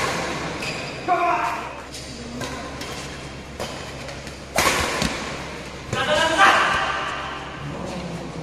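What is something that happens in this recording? Men shout and call out during the game.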